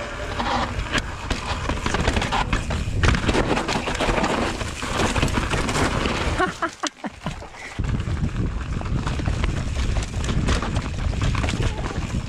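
A mountain bike rattles and clatters over bumps.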